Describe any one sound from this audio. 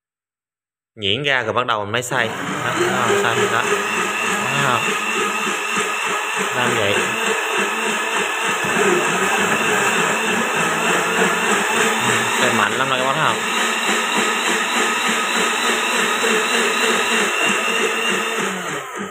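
A blender motor whirs loudly and steadily.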